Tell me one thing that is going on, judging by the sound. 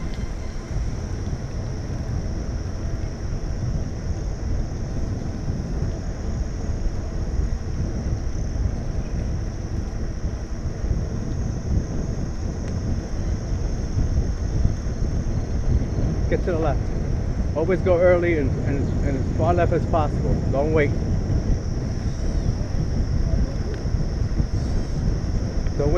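Wind rumbles steadily against the microphone while riding a bicycle outdoors.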